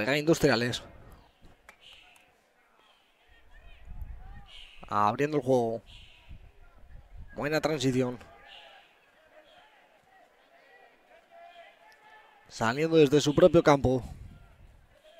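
Teenage rugby players shout across an open field.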